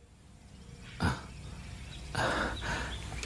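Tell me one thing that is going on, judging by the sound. A man speaks close by in a strained, emotional voice.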